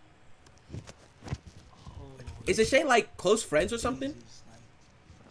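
A young man speaks with surprise.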